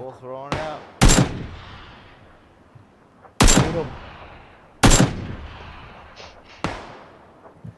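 Rifle shots ring out sharply, each followed by a rolling echo.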